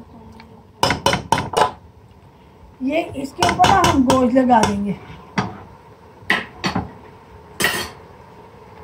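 A metal spoon clinks and scrapes against a metal pot.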